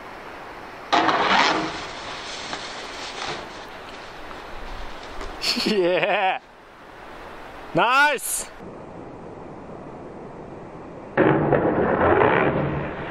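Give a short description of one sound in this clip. A snowboard scrapes and slides over snow.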